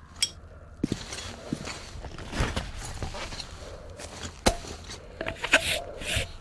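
A rubber gas mask rustles and clicks as it is pulled on.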